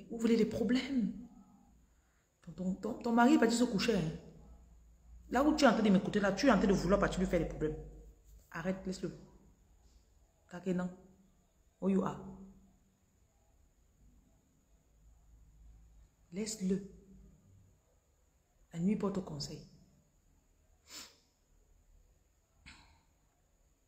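A woman speaks close to the microphone, calmly and with pauses.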